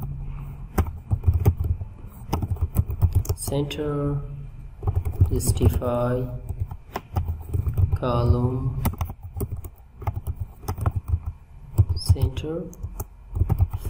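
Keys clatter on a keyboard in quick bursts of typing.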